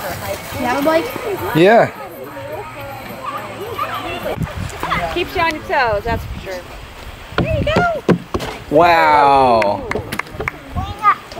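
A young child babbles and squeals nearby.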